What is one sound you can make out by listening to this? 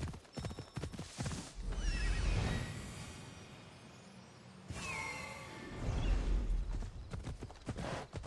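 A horse's hooves clop on a dirt path.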